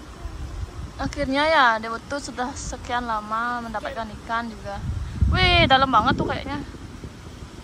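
A boy speaks with animation close by.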